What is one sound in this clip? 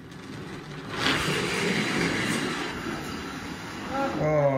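A shuffleboard puck slides along a wooden court with a low rumble.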